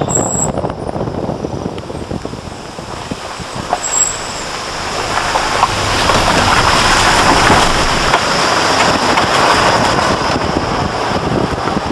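Tyres crunch over gravel and loose stones.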